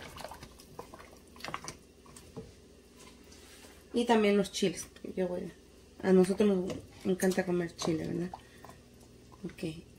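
A ladle stirs and scrapes in a pot of soup.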